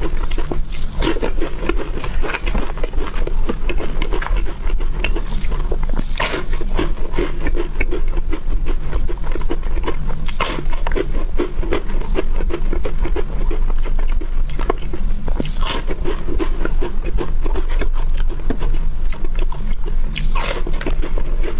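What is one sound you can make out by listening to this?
Crisp wafers snap loudly as a young woman bites into them.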